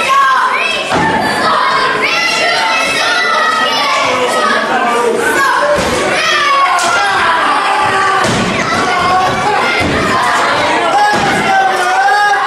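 Heavy thuds of bodies and feet hit a springy mat.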